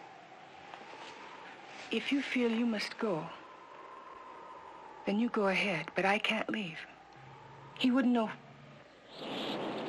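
A woman speaks quietly and anxiously, close by.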